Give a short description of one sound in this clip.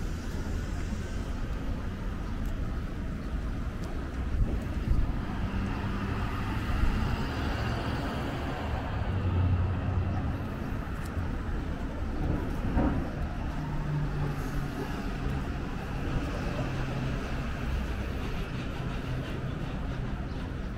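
Traffic rumbles steadily along a street outdoors.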